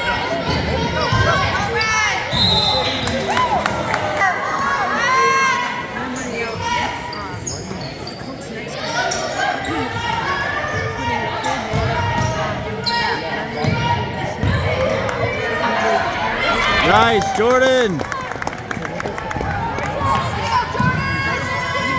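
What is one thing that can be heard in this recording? Spectators chatter and call out nearby.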